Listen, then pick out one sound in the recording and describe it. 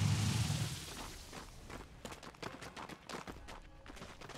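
Quick sharp hits of weapons clatter in a fight.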